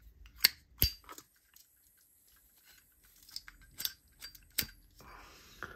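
A lighter's metal lid clicks open and shut.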